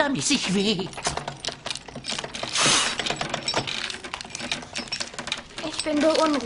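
A wooden crank handle turns with a rapid ratcheting clatter.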